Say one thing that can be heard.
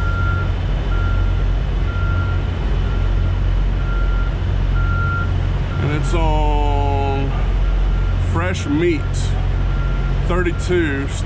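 An electronic panel beeps at a steady pace.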